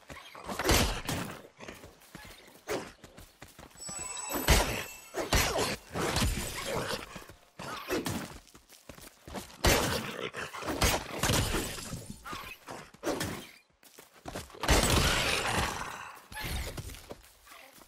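Sword blows swish and strike repeatedly.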